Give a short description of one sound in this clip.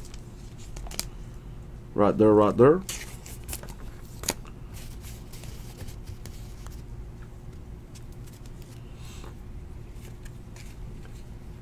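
Trading cards rustle and slide against each other close by.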